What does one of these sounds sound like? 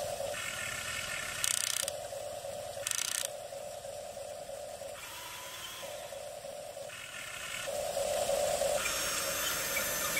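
A toy excavator's small electric motors whir and whine in short bursts.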